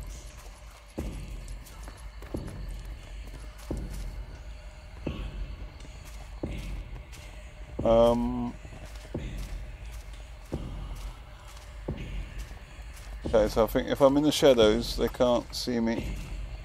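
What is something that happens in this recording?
Footsteps thud slowly and evenly on soft forest ground.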